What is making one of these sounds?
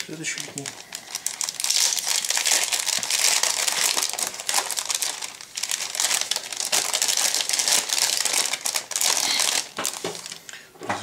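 A plastic bag crinkles and rustles as hands open it.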